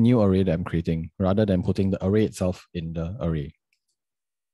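A young man speaks calmly into a close microphone.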